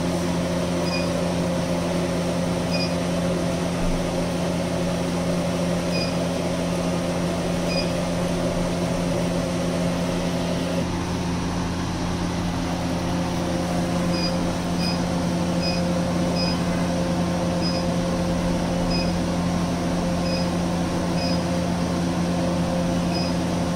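A laser machine beeps with short high pips, now and then.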